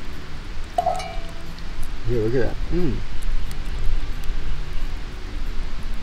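Embers of a campfire crackle softly.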